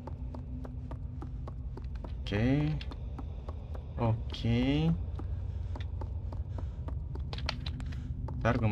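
Small footsteps creak on wooden floorboards.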